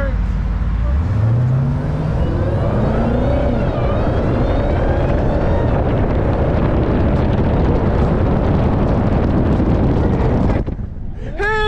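A car engine roars as it revs up and the car speeds away.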